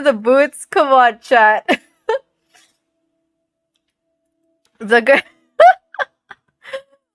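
A young woman talks and laughs with animation into a close microphone.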